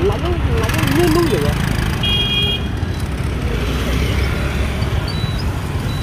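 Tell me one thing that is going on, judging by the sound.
Motorbike engines hum as they pass close by.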